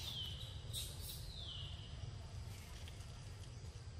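A young macaque bites and chews soft fruit.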